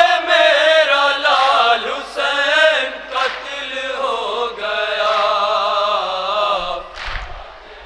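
A young man chants loudly into a microphone.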